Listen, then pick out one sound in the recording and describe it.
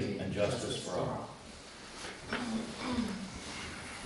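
Chairs creak and shuffle as people sit down.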